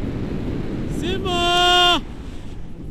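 A man lets out a long, sustained cry close by.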